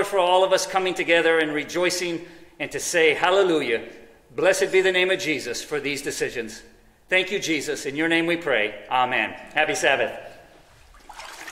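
A middle-aged man speaks calmly through a microphone in an echoing hall.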